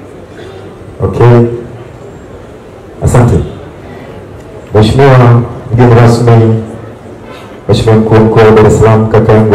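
A man speaks loudly into a microphone over loudspeakers outdoors.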